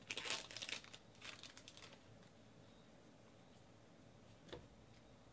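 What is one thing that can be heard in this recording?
Trading cards rustle and flick as hands shuffle through them.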